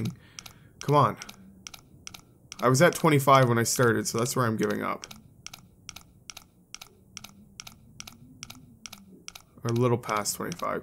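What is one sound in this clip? A safe dial ticks steadily as it turns.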